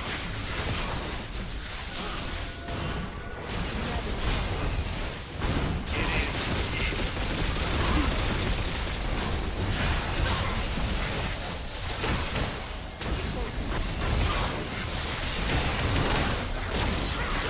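Spell effects and weapon hits crackle and burst in a busy game fight.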